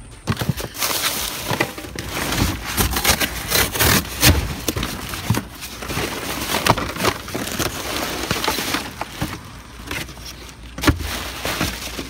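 Cardboard scrapes and thumps as boxes are moved.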